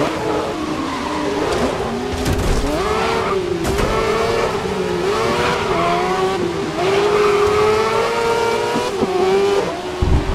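Other racing car engines buzz close by.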